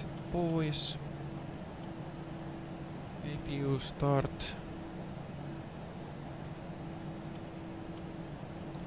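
A steady electrical hum drones.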